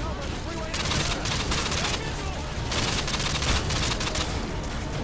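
Rifle gunfire cracks in rapid bursts.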